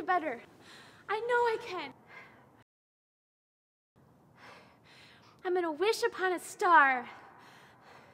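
A young woman speaks excitedly and laughs close by.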